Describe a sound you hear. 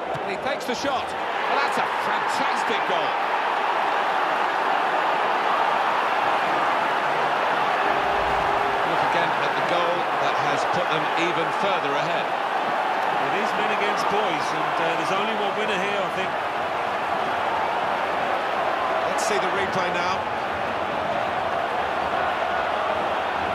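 A large stadium crowd cheers and roars steadily.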